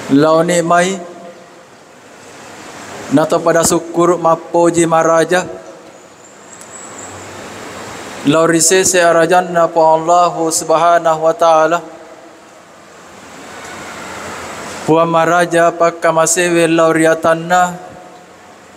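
A man chants loudly through a microphone in phrases separated by pauses, echoing around a large hall.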